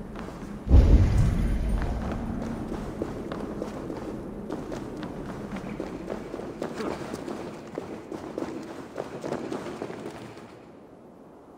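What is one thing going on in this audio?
Footsteps crunch over stone and wood.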